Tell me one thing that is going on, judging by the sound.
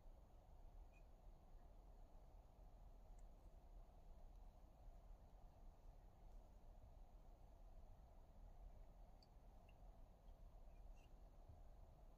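Metal parts click and scrape softly as they are twisted together by hand.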